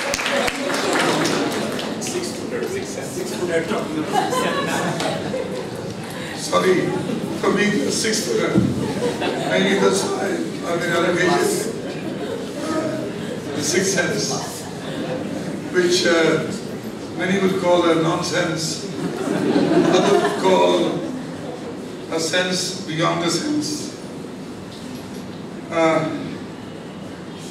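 A man speaks calmly into a microphone over a loudspeaker in a large echoing hall.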